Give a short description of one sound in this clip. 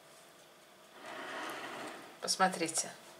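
A ceramic plate slides across a wooden table.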